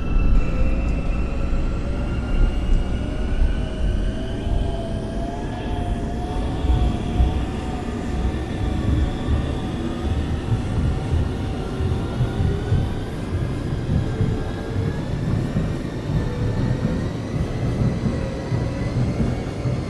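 A train's electric motors whine, their pitch slowly shifting.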